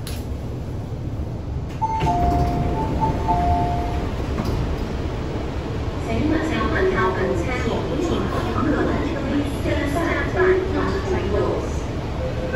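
A low steady hum of a train carriage runs throughout.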